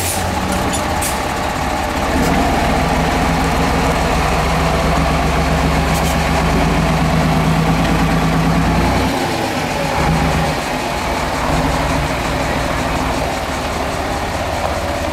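Rocks crunch and grind under large tyres.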